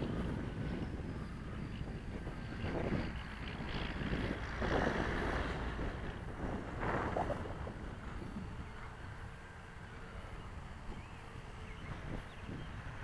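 Wind blusters across the microphone outdoors.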